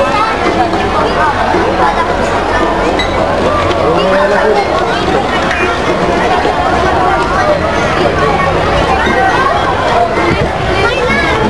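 A large outdoor crowd chatters all around.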